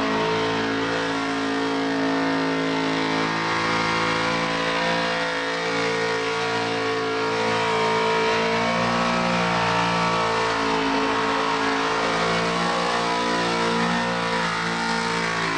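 A supercharged car engine roars at high revs during a burnout.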